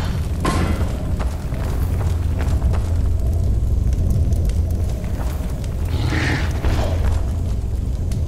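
An armored warrior's footsteps crunch on snowy ground.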